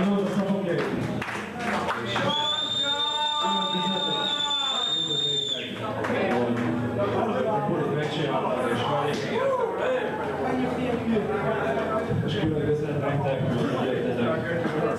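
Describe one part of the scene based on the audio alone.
A man sings loudly through a microphone and loudspeakers.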